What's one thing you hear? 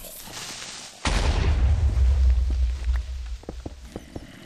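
A loud explosion booms and then rumbles away.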